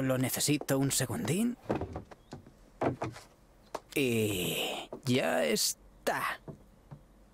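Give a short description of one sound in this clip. A young man speaks softly and briefly.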